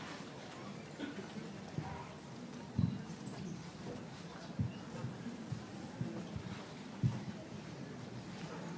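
An elderly man speaks quietly through a microphone in a large echoing hall.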